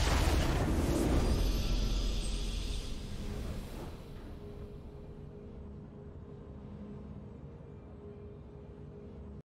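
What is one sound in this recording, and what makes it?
A triumphant game fanfare swells and then fades to a quiet hum.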